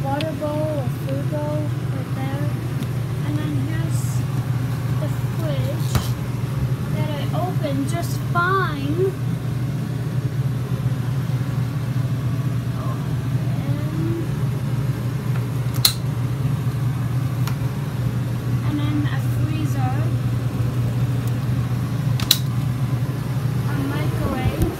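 A refrigerator hums steadily.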